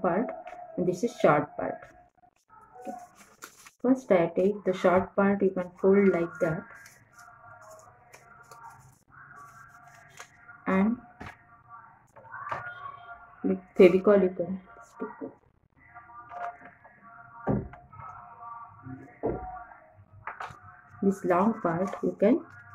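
Paper crinkles as it is folded by hand.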